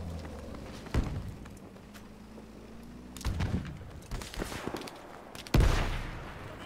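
Rifle shots crack loudly, one at a time, with a rumbling echo.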